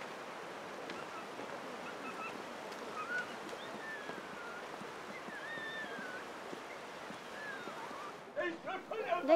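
A river rushes and gurgles nearby.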